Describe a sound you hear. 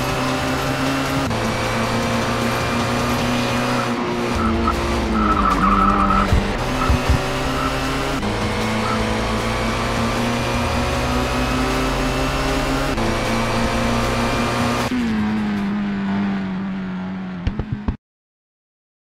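A racing car engine roars at high revs and shifts gears.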